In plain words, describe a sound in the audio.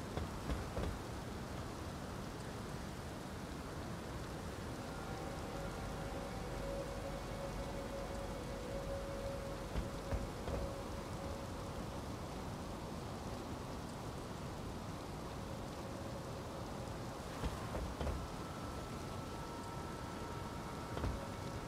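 Footsteps scrape and tap on a stone roof.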